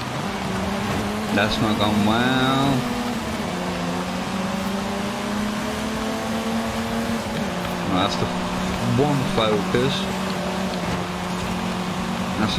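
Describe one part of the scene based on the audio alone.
A car engine roars steadily as it races at speed.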